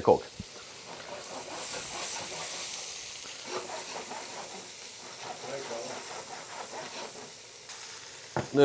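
Food sizzles and fries in a pan.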